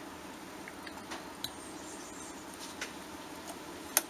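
A squeeze bottle sputters as sauce drips into a glass bowl.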